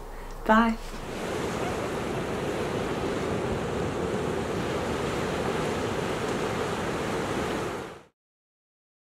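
Small waves wash steadily onto a beach.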